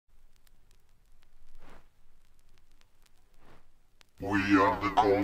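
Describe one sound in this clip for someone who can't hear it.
A vinyl record crackles faintly with surface noise.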